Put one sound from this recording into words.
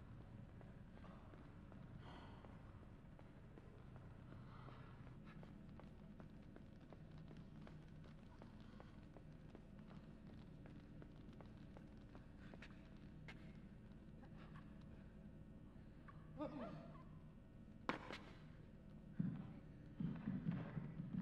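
Footsteps patter quickly as a boy runs.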